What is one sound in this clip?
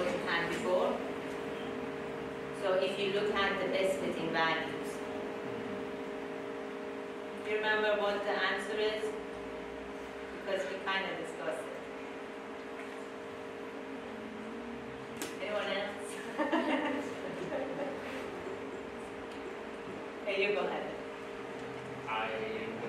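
A young woman speaks with animation into a microphone in an echoing room, pausing often.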